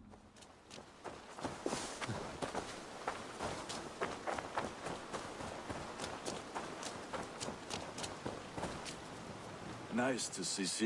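Footsteps thud steadily on dirt.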